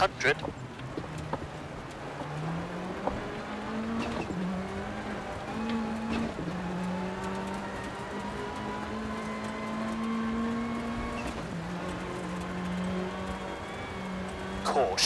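Gravel and stones rattle against the underside of a car.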